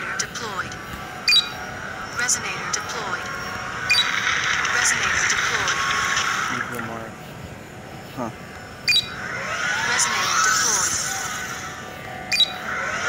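Electronic game sounds chime and whoosh in bursts.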